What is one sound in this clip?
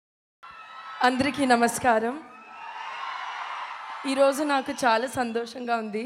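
A young woman speaks cheerfully into a microphone over loudspeakers.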